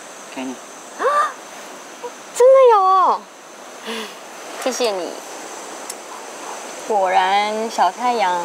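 A young woman speaks softly and playfully nearby.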